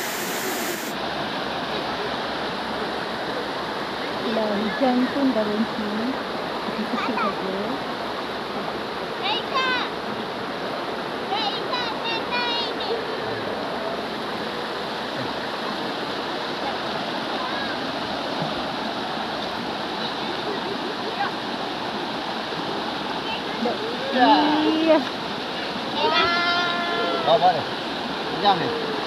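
A shallow river rushes steadily over rocks nearby.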